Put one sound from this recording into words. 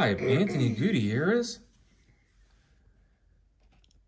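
A stiff card rustles softly as fingers turn it over.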